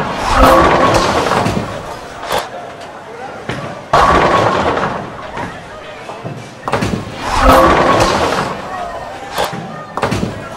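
A bowling ball rolls down a wooden lane with a low rumble.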